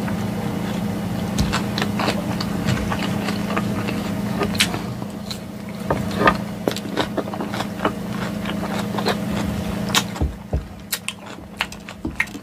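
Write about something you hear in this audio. A woman crunches and chews food close to a microphone.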